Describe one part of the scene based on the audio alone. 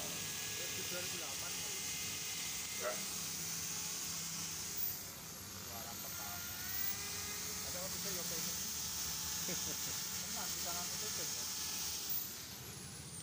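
A power polisher whirs steadily against a car's hood.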